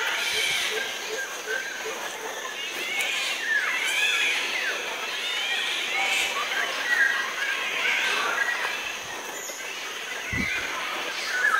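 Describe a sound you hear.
A small bird sings with quick, warbling chirps outdoors.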